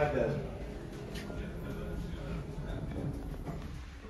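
Elevator doors slide shut with a soft rumble.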